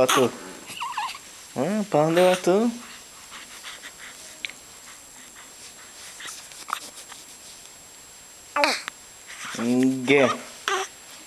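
A newborn baby cries and wails in short bursts close by.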